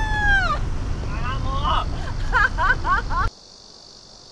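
A young woman cries out in high, wavering wails close by.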